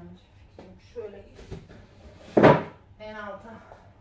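A cardboard box rustles.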